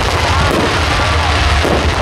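Rockets whistle and hiss as they shoot upward.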